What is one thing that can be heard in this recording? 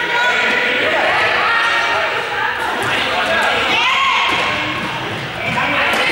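Children shout and call out during a game in a large echoing sports hall.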